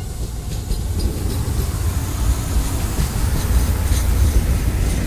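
A passenger train rumbles past on the tracks close by.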